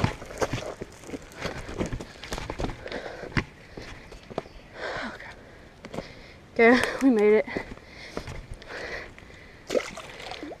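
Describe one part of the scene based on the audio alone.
Footsteps crunch on dry leaves and snap twigs.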